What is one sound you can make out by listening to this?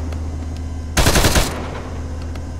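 A loud explosion booms once.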